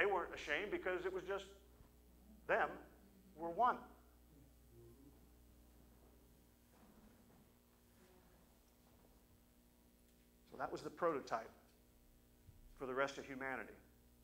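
An elderly man speaks with animation through a microphone in an echoing hall, with long pauses.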